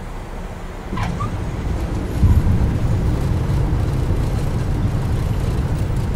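Aircraft wheels touch down and rumble along a runway.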